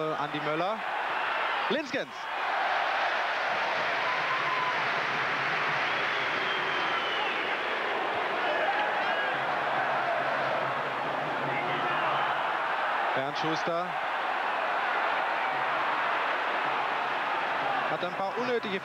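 A crowd in a stadium roars and chants steadily, outdoors.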